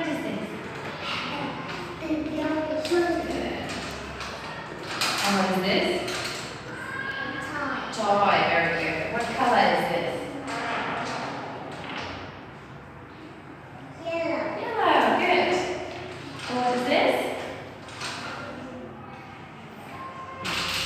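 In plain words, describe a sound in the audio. A young woman speaks clearly and slowly, close by.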